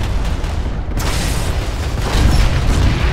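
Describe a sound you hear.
An explosion bursts nearby with a loud blast.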